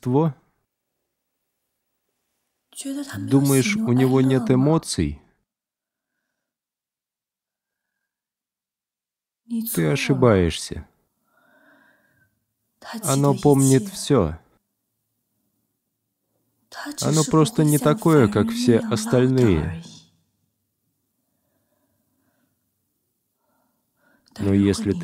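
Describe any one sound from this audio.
A young woman speaks calmly and softly, close by.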